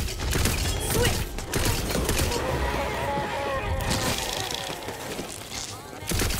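Explosions burst and crackle.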